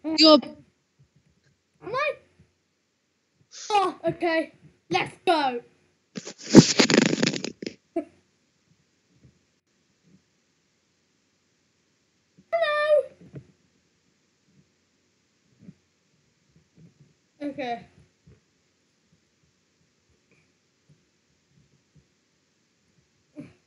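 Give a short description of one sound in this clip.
A young boy speaks with excitement in short bursts, close to a microphone.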